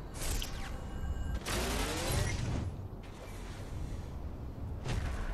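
Air rushes past in loud whooshing bursts as a figure glides through the air.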